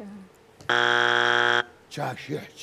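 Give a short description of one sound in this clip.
A loud game show buzzer sounds once.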